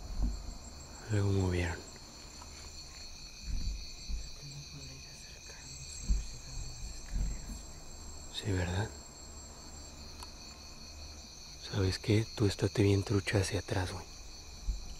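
A man speaks in short, low bursts close by.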